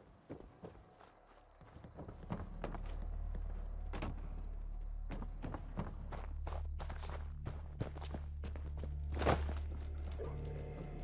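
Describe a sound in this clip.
Footsteps tread steadily over a hard floor.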